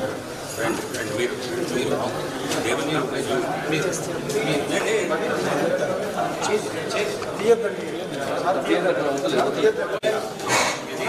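A crowd of men talk over one another close by.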